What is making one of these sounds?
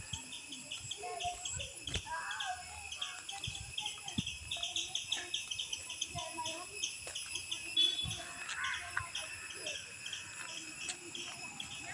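Footsteps scuff along a paved path outdoors.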